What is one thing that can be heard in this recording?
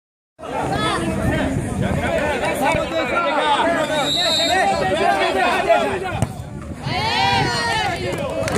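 A crowd of young men shout and chatter excitedly outdoors.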